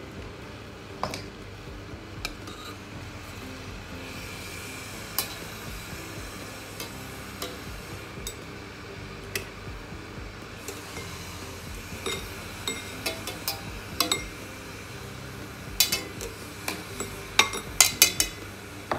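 A metal skimmer clinks against the rim of a steel pot.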